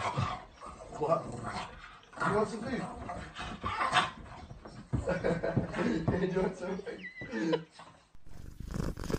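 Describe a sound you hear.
A small dog whines and yelps.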